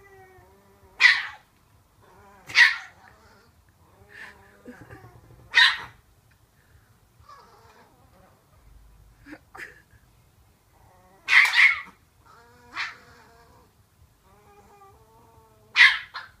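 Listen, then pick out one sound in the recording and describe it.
A small dog barks in sharp, loud yaps close by.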